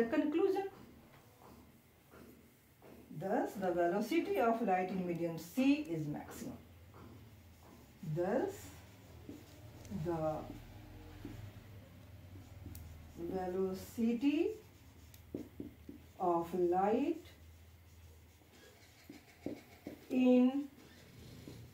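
A young woman speaks calmly, explaining, close by.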